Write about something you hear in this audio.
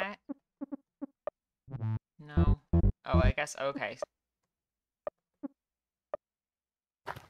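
Short electronic blips sound as menu choices change.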